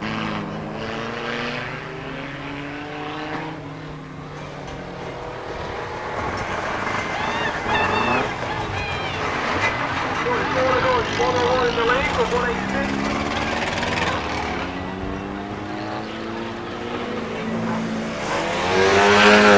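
Car engines roar and rev as cars race around a track.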